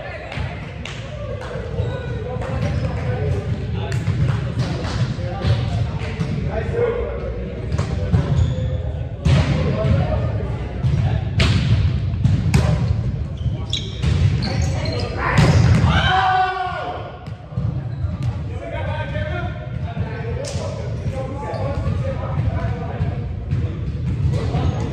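A ball thumps against hands and the floor.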